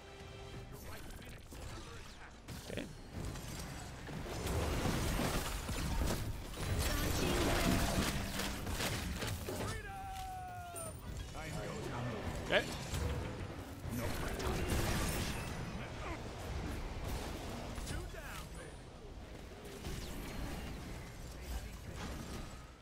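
Video game combat effects zap, crackle and boom.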